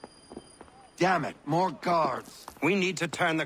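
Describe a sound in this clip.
A man speaks urgently and close by.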